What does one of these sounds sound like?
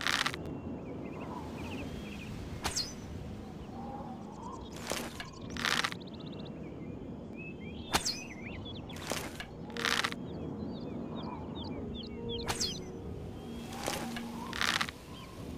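Wind blows steadily through trees.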